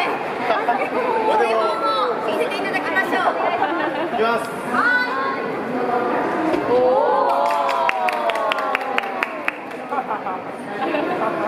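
A crowd of men and women chatter and call out in a large echoing hall.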